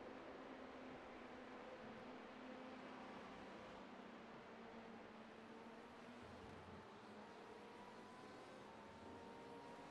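A racing car engine drones steadily as the car speeds along a track.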